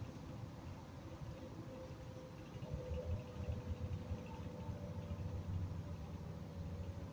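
A bus engine hums and rumbles steadily from inside the cabin.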